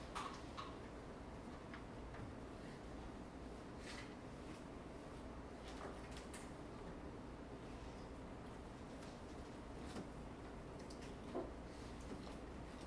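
A quiet indoor room hums softly and steadily.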